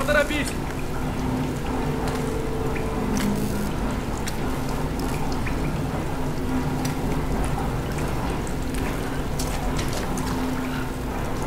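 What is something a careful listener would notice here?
Rain pours steadily, splashing on metal.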